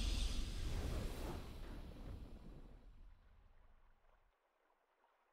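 A triumphant victory fanfare rings out and slowly fades away.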